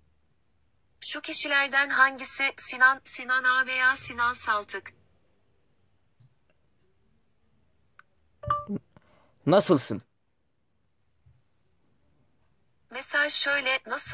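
A synthetic voice speaks through a small phone speaker.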